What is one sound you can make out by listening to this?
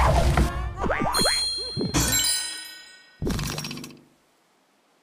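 A bright game jingle plays as rewards are tallied.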